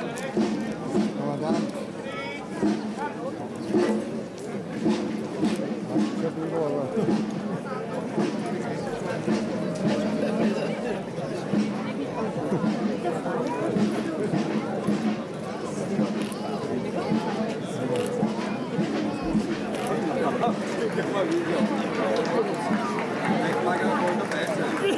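A crowd of onlookers chatters all around outdoors.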